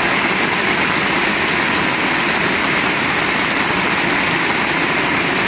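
Heavy rain pours steadily onto pavement and a roof outdoors.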